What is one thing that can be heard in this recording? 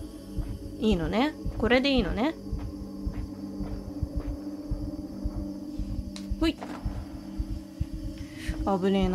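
Many footsteps shuffle and tap on a hard floor.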